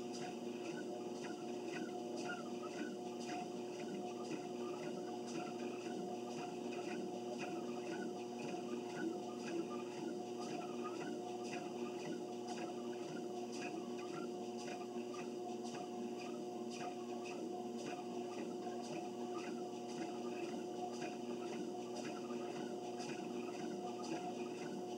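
Footsteps thud in a steady rhythm on a treadmill belt.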